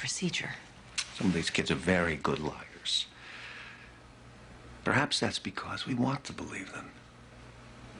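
A middle-aged man speaks earnestly nearby.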